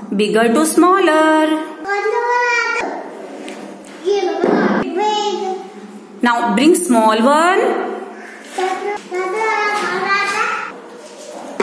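A small child speaks with animation close by.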